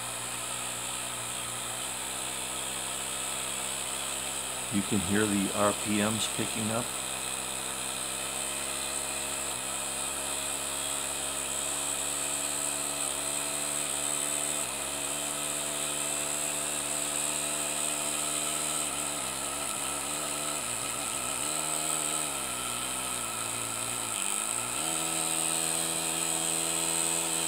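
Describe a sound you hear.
A small engine runs with a steady whir.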